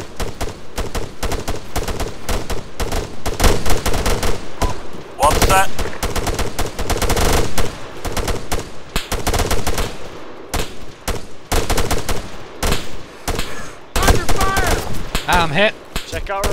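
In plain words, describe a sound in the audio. Rifles fire in rapid bursts of sharp, loud shots.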